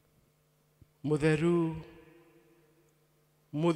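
A man speaks slowly and prayerfully into a microphone, with a slight echo.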